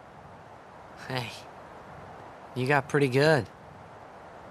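A young woman speaks calmly.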